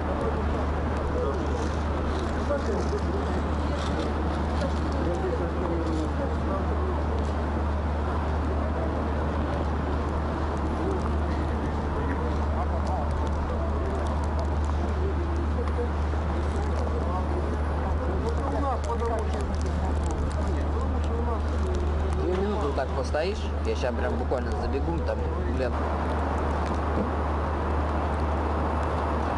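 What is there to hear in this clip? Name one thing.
A crowd of pedestrians murmurs and chatters nearby.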